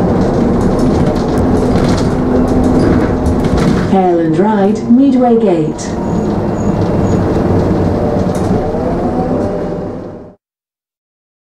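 A bus engine hums and rumbles steadily inside the bus.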